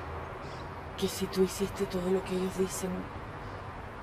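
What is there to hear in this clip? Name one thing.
A woman speaks softly and slowly, close by.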